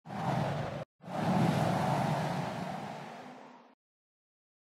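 A soft whooshing rush sweeps past and fades.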